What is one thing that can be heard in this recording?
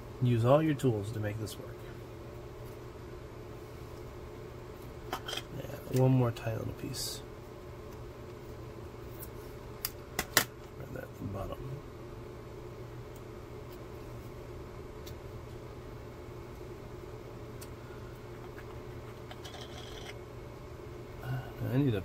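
Small plastic parts click and tap against each other.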